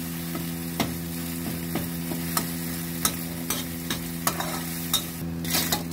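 A metal spatula scrapes and taps against a wok.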